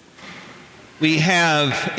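A man chants in a strong, sung voice through a microphone in a large echoing hall.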